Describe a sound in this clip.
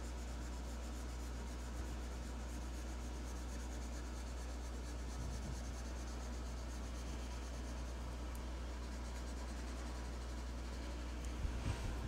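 A marker squeaks and scratches softly across paper.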